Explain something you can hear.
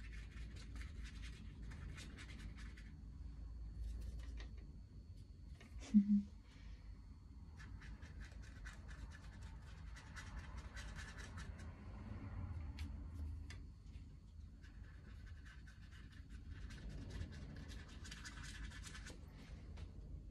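A paintbrush dabs and scratches against canvas in short bursts.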